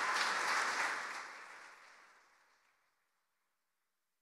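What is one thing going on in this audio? An audience applauds and cheers in a large echoing hall, then the applause fades away.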